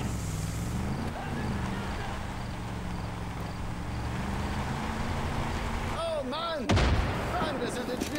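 A mounted machine gun fires bursts.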